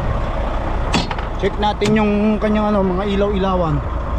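A truck door latch clicks and the door swings open.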